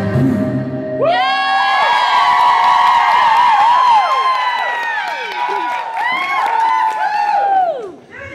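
A woman sings loudly through a loudspeaker in a large hall.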